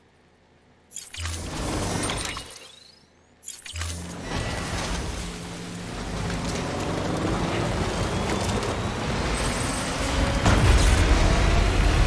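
A truck engine rumbles as the vehicle drives over rough ground.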